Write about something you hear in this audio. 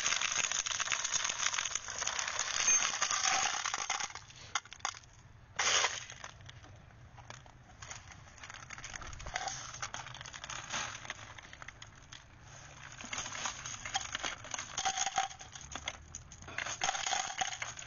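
Metal cartridges clink as they spill and are handled.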